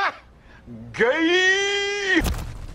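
A man shouts loudly in a long call.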